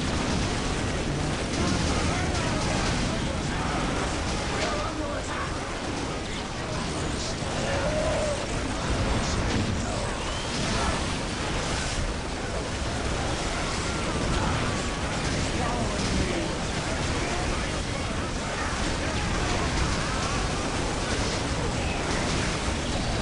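Gunfire rattles and crackles in rapid bursts.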